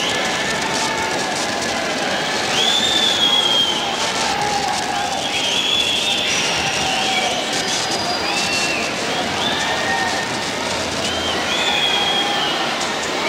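A rock band plays loudly in a live concert.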